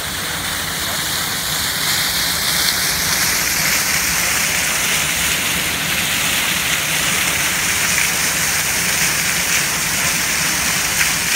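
A waterfall splashes loudly and steadily down a wall.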